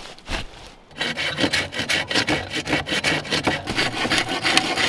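A hand saw cuts through bamboo with quick back-and-forth strokes.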